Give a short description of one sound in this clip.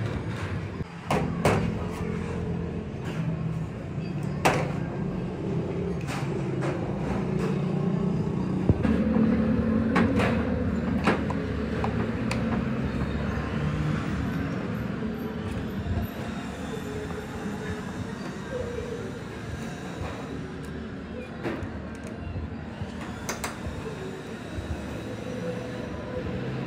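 Metal parts of a sewing machine clink and tap as they are handled.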